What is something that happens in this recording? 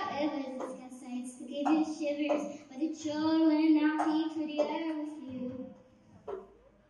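A young girl speaks with animation into a microphone.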